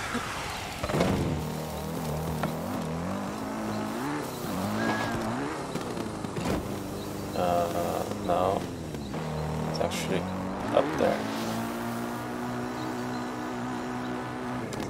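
A motorbike engine hums and revs steadily.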